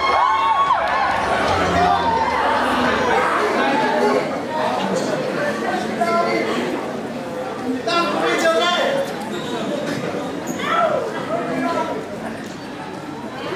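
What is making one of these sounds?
A young woman speaks through a microphone in a large echoing hall.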